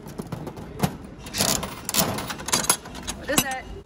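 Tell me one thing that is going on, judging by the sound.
A coin-operated vending machine crank clicks and rattles as it is turned.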